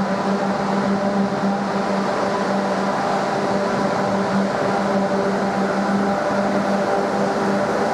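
A train hums steadily on an overhead track.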